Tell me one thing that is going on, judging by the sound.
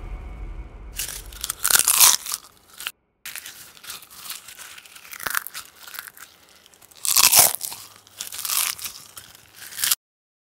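A man crunches popcorn close by.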